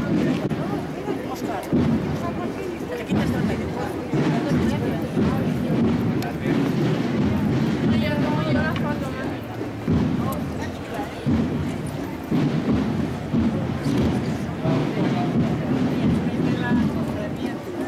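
A crowd of adults murmurs and chatters outdoors.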